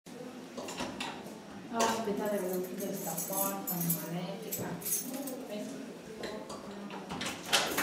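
A young woman rattles a door handle.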